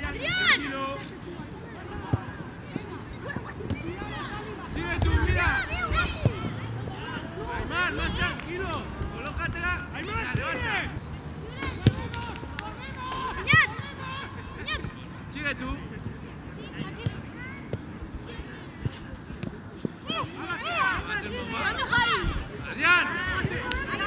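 Children shout and call to each other outdoors.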